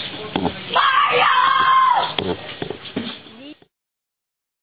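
A person shouts loudly.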